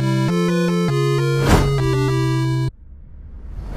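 Electronic music plays with a short jingle.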